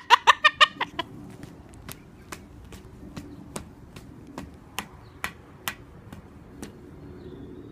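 A cockatoo clicks its beak repeatedly.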